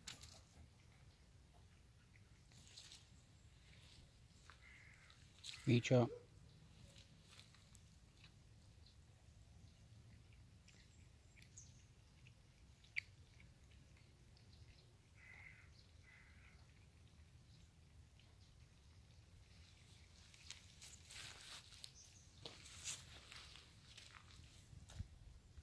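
Cats lap and chew food close by.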